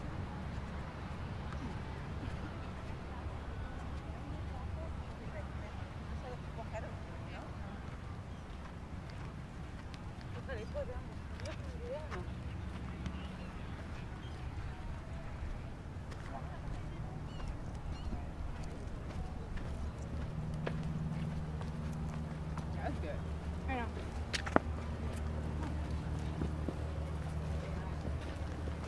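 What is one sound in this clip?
Distant people chatter and call out on a beach.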